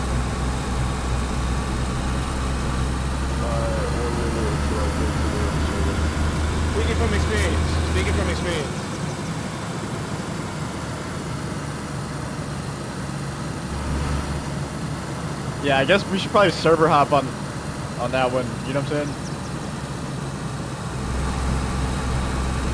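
Tyres roll over rough tarmac.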